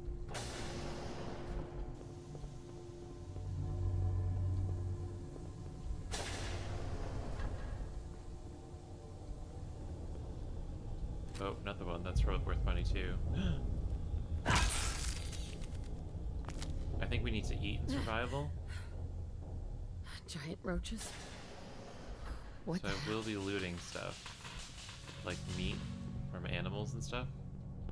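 Footsteps tread across a hard floor.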